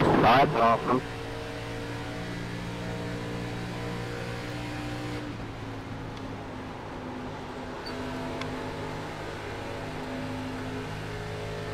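A race car engine drones steadily at high speed, shifting pitch slightly.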